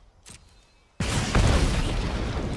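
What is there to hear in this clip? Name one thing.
A fiery magic effect bursts with a loud rushing whoosh.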